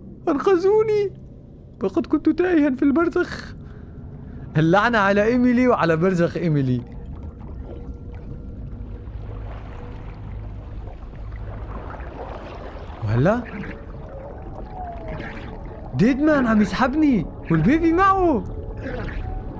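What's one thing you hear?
A man speaks slowly in a low voice.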